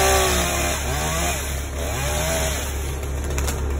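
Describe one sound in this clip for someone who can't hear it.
A chainsaw revs high and cuts through a branch.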